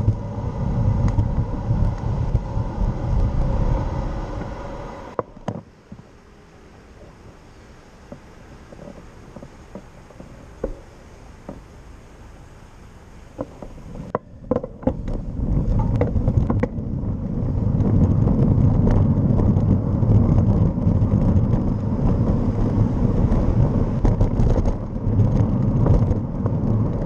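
Wind buffets and rumbles loudly outdoors.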